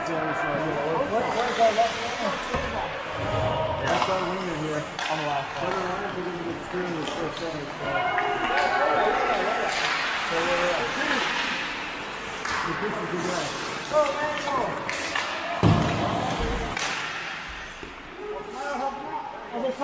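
Adult men call out to each other around the rink.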